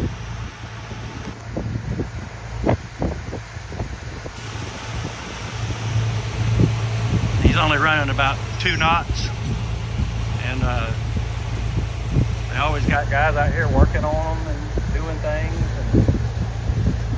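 River water splashes against a hull.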